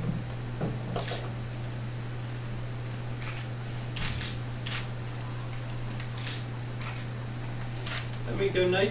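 Glassware clinks.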